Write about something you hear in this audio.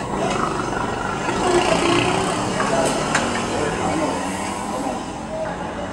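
A wrench clicks against a bicycle wheel.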